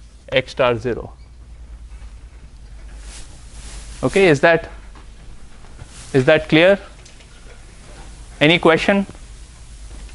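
A man speaks in short, clear bursts with long pauses, in a room with some echo.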